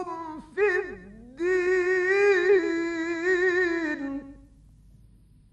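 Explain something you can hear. An elderly man chants in a long, wavering melodic voice through an old recording.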